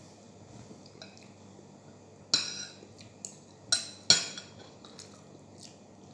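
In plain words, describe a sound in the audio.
Utensils clink against a plate.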